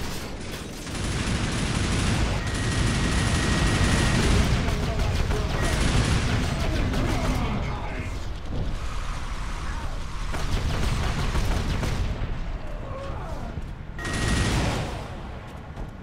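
A giant war machine fires its heavy cannon with loud blasts.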